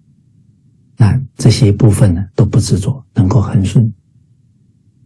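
A middle-aged man speaks calmly into a microphone, heard through an online call.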